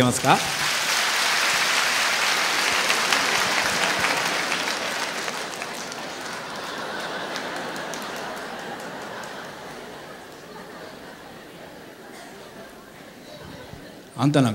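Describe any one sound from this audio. A large audience applauds and cheers in a big hall, then slowly fades.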